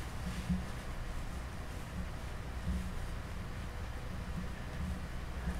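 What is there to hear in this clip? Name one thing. Fingers rub and press soft clay close by.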